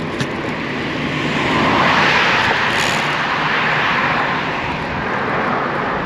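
A car passes close by on a road.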